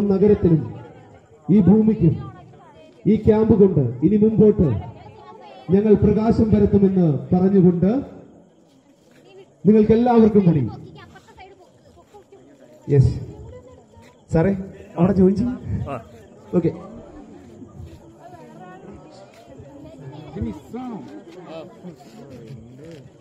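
A group of young men chatters and murmurs nearby.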